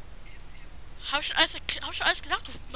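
Swords clash and ring with sharp metallic clangs.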